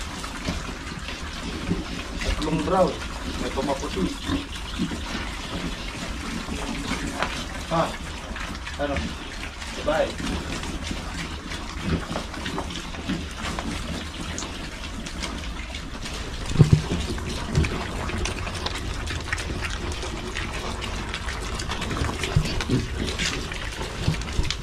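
Piglets grunt and squeal close by.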